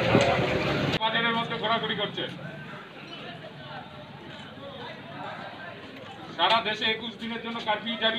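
A man gives loud orders outdoors nearby.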